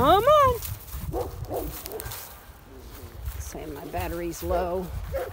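A dog runs across dry grass, paws thudding and rustling.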